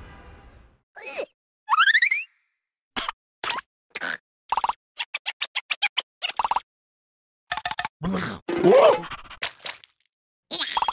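A small cartoon creature squeaks and babbles in a high, silly voice.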